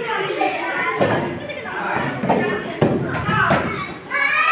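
Children's bodies thump onto a padded floor.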